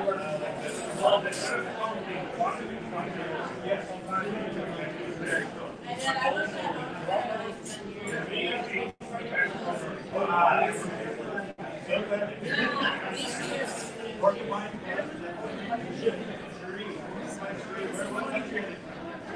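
Several men and women chatter nearby at once in a busy room.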